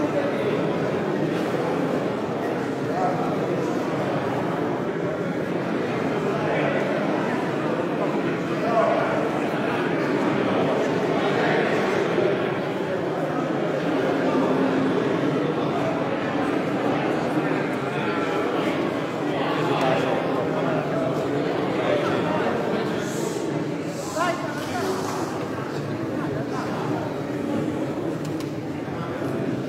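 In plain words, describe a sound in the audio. A male choir sings together in low, close harmony, echoing through a large hall.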